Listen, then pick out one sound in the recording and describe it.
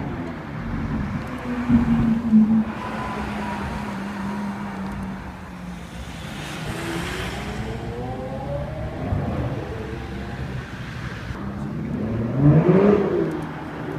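A third sports car engine revs loudly and accelerates past.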